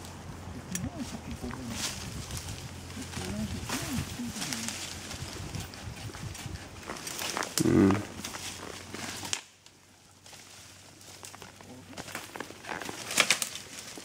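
Branches snap and crackle as a man pulls them aside.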